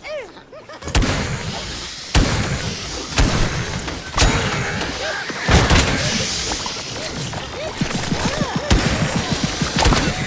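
Guns fire in loud bursts.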